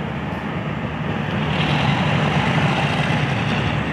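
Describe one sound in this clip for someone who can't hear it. A locomotive engine drones in the distance.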